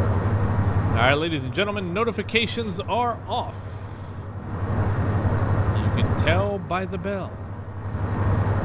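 A man talks through a headset microphone.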